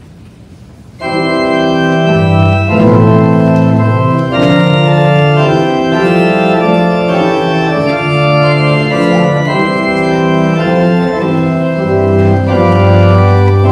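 An organ plays chords loudly.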